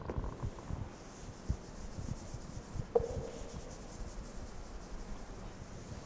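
A cloth duster rubs across a chalkboard.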